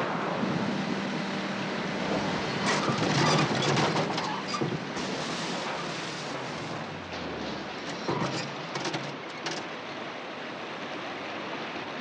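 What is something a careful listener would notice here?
Liquid gushes out with a hissing spray.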